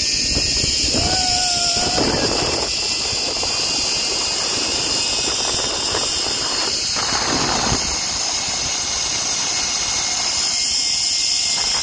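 Wind rushes loudly and steadily past the microphone.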